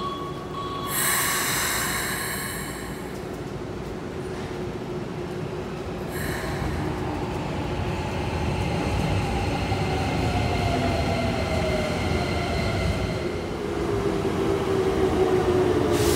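A train rumbles past along a platform.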